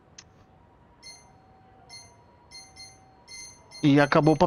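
Short electronic blips sound as a menu selection moves.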